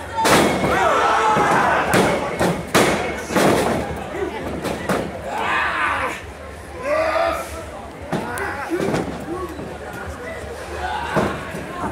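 A crowd of men and women shouts and cheers in a large hall.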